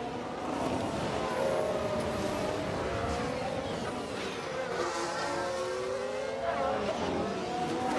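Racing car engines whine and rise in pitch as they speed past.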